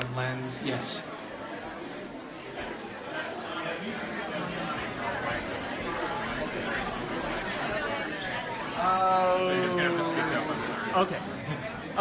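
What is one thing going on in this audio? A crowd chatters in a room.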